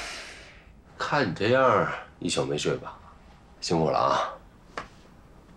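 A man speaks quietly and calmly, close by.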